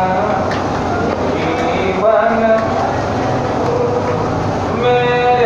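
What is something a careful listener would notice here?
A crowd of women and men chatter close by.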